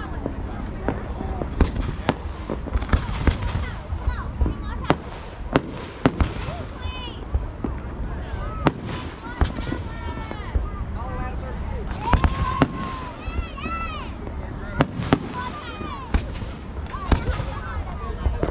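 Fireworks bang and crackle overhead.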